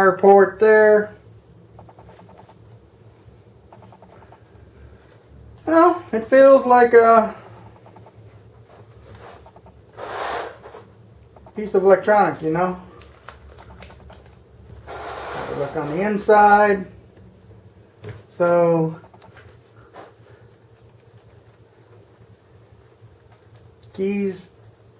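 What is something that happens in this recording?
A man talks calmly and close by, in short phrases.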